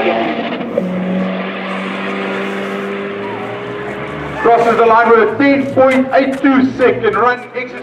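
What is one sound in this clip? A car engine roars as a car speeds down a track.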